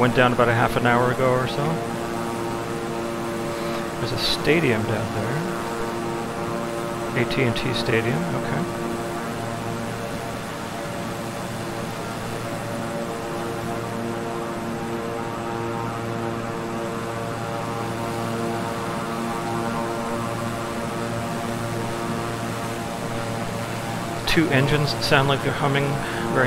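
An airliner's jet engines hum steadily in flight.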